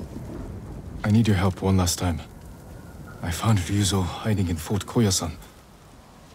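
A man speaks in a low, calm voice, close by.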